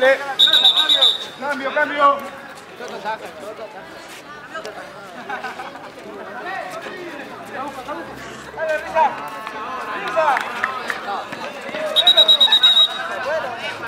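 A referee blows a whistle in sharp bursts.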